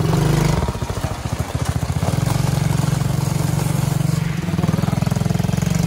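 A small engine putters and buzzes steadily close by.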